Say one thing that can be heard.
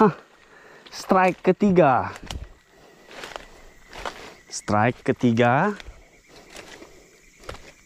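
Dry leaves and twigs crackle underfoot.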